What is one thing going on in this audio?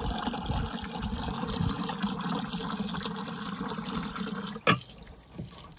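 Water gushes steadily from a hose.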